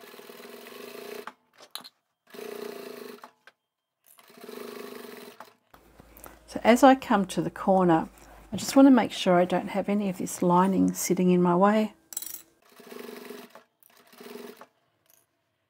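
A sewing machine runs in short bursts.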